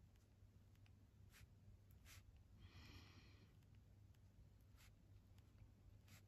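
A pencil scratches softly across paper in short strokes.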